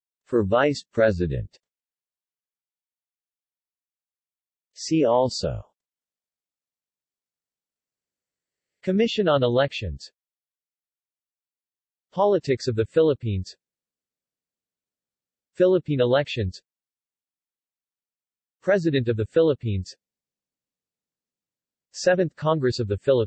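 A man speaks calmly in short phrases with long pauses between them.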